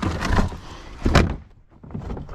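A plastic bin lid thuds shut.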